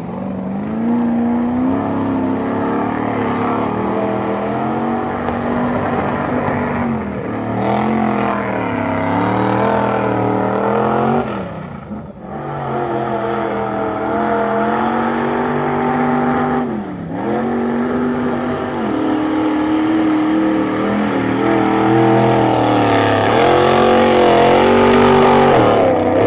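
A truck engine roars loudly and revs up and down.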